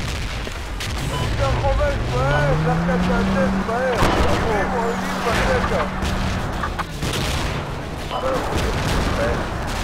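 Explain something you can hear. A heavy vehicle engine revs up and rumbles steadily as it drives.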